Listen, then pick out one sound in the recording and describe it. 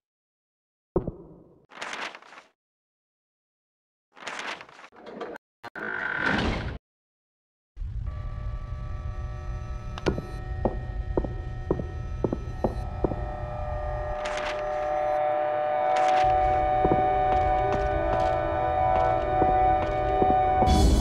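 Footsteps thud on a hard floor, walking and then running.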